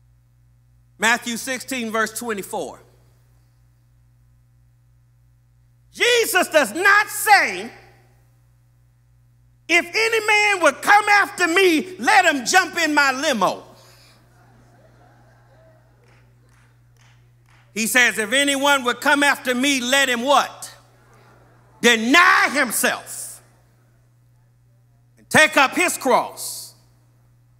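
A middle-aged man preaches with animation into a microphone, in bursts with pauses between.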